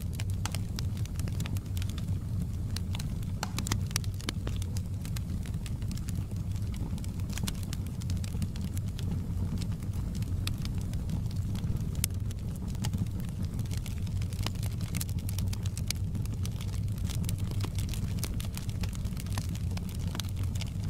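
Flames roar with a low, steady rumble.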